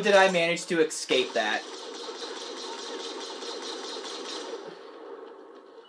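Rapid gunfire crackles from a video game through loudspeakers.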